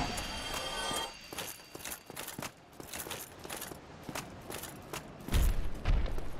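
Armoured footsteps clank as a knight runs.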